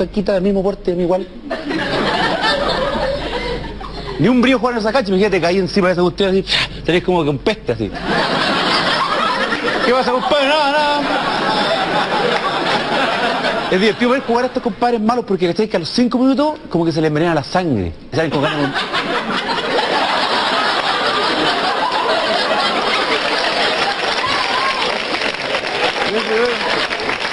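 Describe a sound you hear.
A young man talks animatedly into a microphone.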